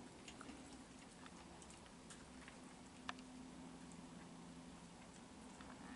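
Raccoons crunch softly on dry food pellets.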